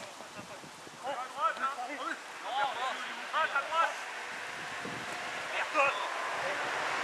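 Children shout to each other across an outdoor field.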